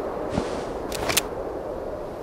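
A weapon clicks as it is drawn.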